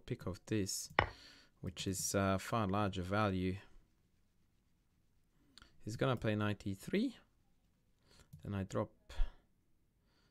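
A man talks calmly into a close headset microphone, in short bursts.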